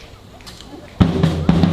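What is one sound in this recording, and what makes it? A brass band starts to play loudly.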